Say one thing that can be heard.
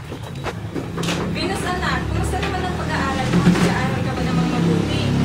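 Young girls talk and laugh nearby.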